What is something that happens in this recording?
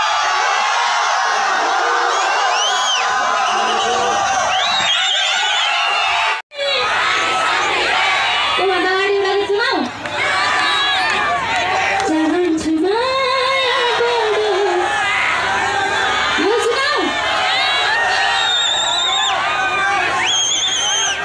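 A large crowd chatters and cheers loudly.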